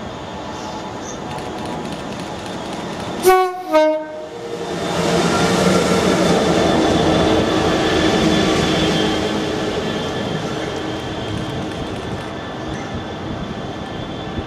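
A diesel locomotive approaches, roars past close by and rumbles away.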